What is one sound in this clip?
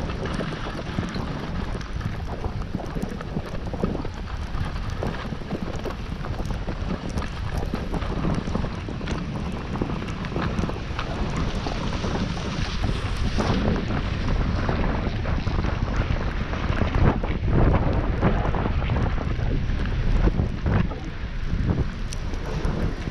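Wind rumbles loudly against the microphone outdoors.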